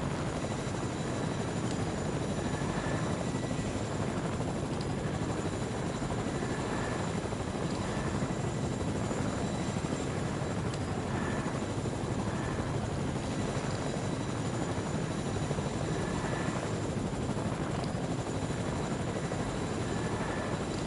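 A helicopter's rotor whirs and thumps steadily overhead.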